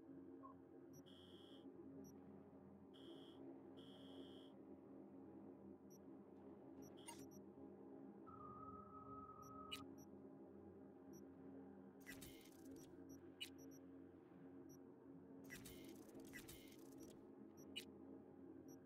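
Soft electronic menu clicks and beeps sound now and then.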